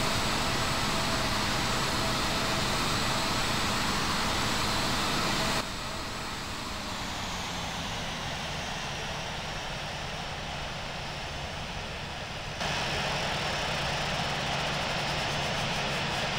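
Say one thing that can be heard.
Jet engines whine and roar steadily as an airliner taxis.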